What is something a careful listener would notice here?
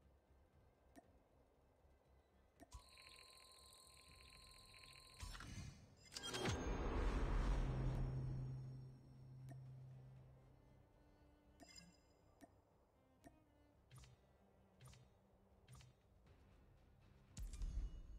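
Soft game menu clicks sound at intervals.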